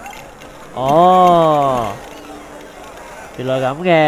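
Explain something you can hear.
Small coins jingle and scatter.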